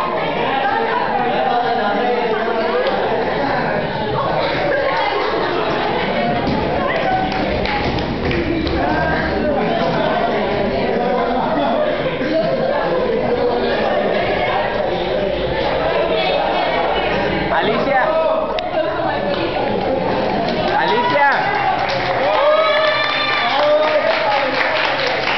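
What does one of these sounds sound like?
A crowd of young people chatter loudly in an echoing room.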